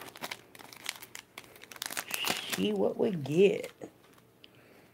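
A foil wrapper crinkles and rustles.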